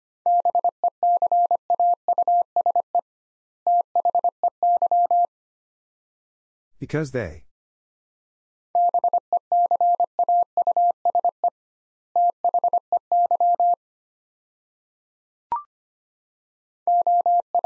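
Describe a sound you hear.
A telegraph key taps out fast Morse code beeps in short bursts.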